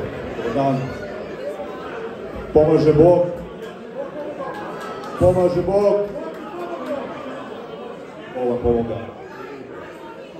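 A man speaks loudly into a microphone through loudspeakers, in an echoing hall.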